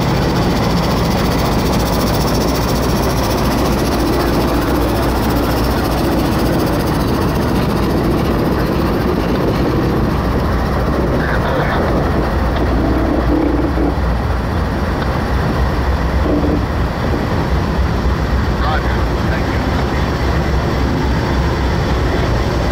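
Diesel locomotive engines rumble loudly close by.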